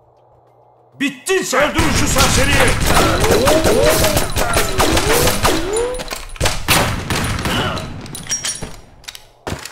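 Pistol shots ring out rapidly with echoing booms.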